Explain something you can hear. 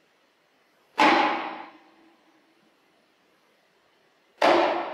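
A hand drum is struck with sharp, ringing beats in a large echoing hall.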